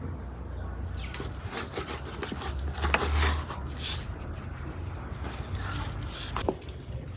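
Hands rub salt into raw meat with soft, wet squelching and rustling.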